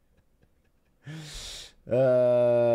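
A young man laughs close to a microphone.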